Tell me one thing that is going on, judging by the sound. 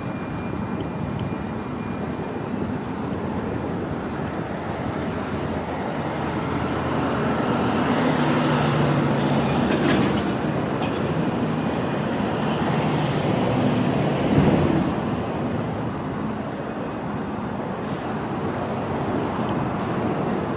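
A plastic shell scrapes and rolls on a concrete sidewalk.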